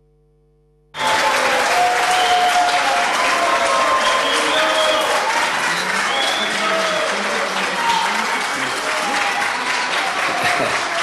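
An elderly man speaks through a microphone.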